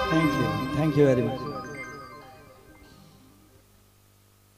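A man sings into a microphone, his last note fading with echo.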